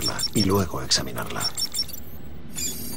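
An electronic device beeps in quick, repeated high tones.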